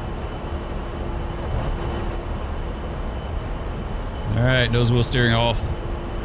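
A jet engine roars steadily as an aircraft rolls down a runway.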